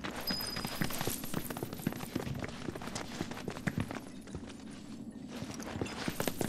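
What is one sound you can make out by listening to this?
Footsteps crunch on loose rocky ground.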